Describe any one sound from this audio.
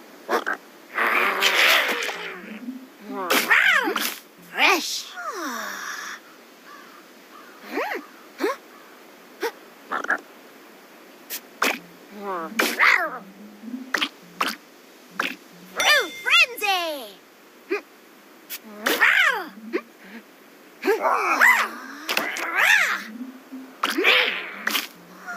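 Bright cartoon game sounds pop and chime as pieces burst and clear.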